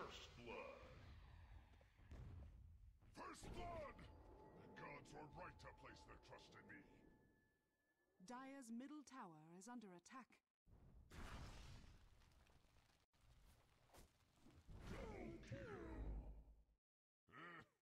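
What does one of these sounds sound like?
Spells whoosh and crackle in a fantasy battle.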